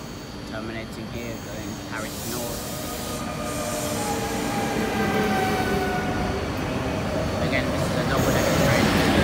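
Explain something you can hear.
An electric train rolls in along the tracks, its rumble growing louder.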